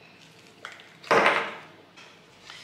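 An ice cube drops onto a table with a knock.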